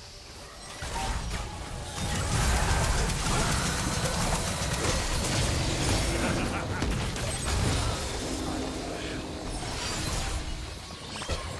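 Magic spells whoosh and explode in a busy fight.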